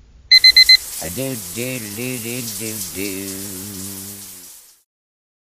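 A young man sings loudly in a wavering voice.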